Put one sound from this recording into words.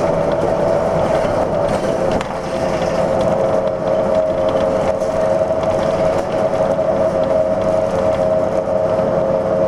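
A vehicle engine hums steadily from inside a moving car.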